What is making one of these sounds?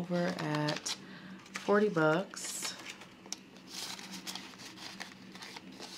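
Paper bills rustle as they are shuffled.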